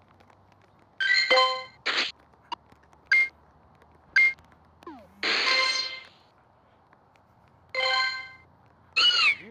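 Bright electronic chimes ring out in short bursts.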